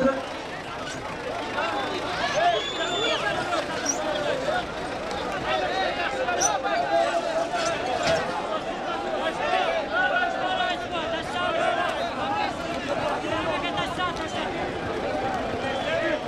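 A large crowd of men talks and shouts outdoors.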